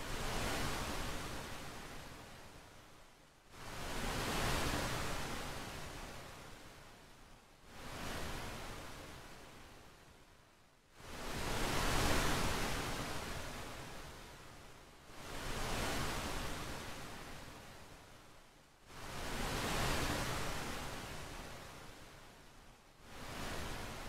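Ocean waves surge and wash, swelling and fading every few seconds.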